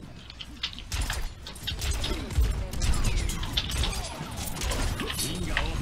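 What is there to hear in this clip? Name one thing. Throwing stars whoosh and clink in quick bursts.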